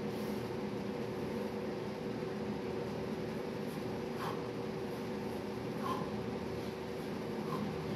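A man breathes heavily.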